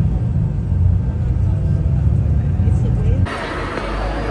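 A bus engine rumbles low and steady.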